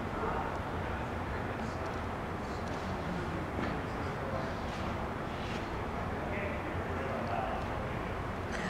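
Indistinct voices echo in a large indoor hall.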